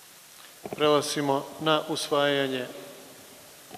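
A man speaks into a microphone, heard over loudspeakers in a large hall.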